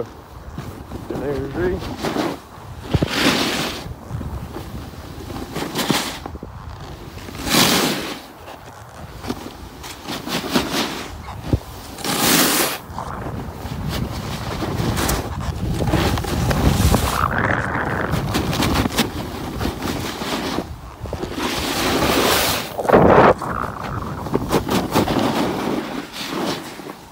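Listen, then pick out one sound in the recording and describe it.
A snowboard carves and scrapes over packed snow.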